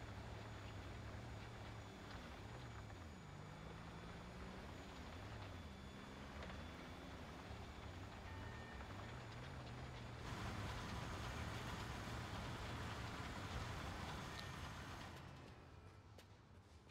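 A heavy diesel engine rumbles steadily, its pitch wavering up and down.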